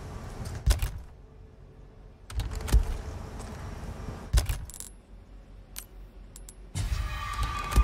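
Short menu clicks sound as items are selected.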